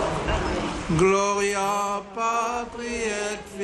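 A crowd of voices sings a slow hymn.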